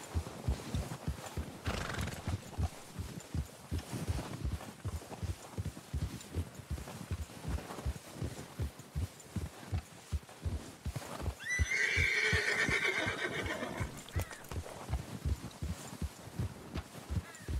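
A horse's hooves crunch steadily through deep snow.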